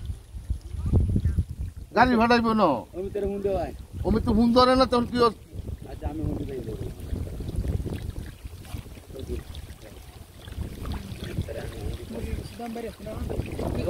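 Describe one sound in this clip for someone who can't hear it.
Water sloshes and splashes as a net is lifted.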